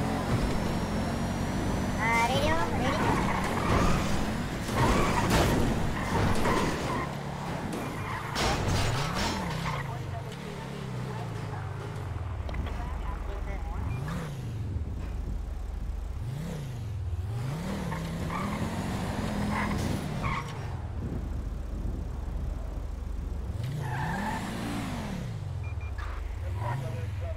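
A car engine roars at high speed, then revs up and down while idling.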